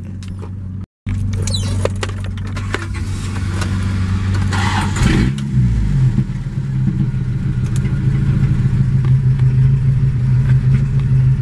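A car engine idles with a low, steady rumble.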